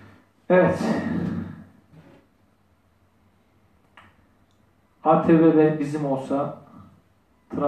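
A man speaks formally in a small room.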